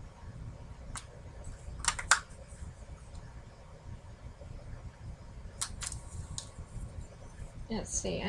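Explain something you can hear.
Plastic lids of a pill box click and snap as hands handle it.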